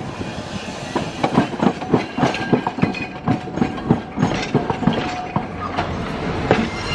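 Tram wheels clack rhythmically over rail joints as the tram passes close by.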